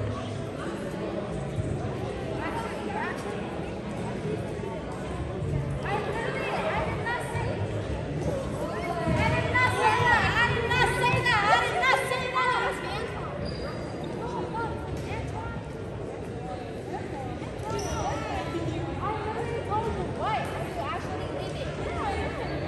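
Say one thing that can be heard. A crowd of people chatters throughout a large echoing gym.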